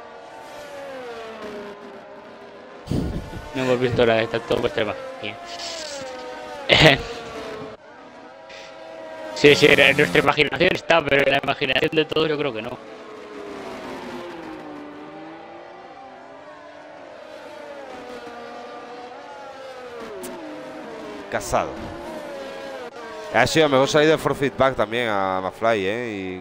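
Racing car engines whine loudly, rising and falling in pitch as gears shift.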